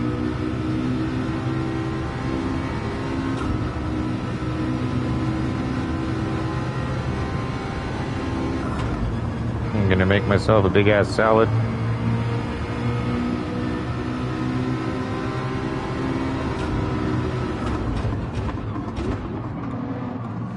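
A racing car engine roars at high speed, its pitch rising and falling through gear changes.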